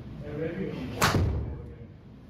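A golf club strikes a ball with a sharp smack.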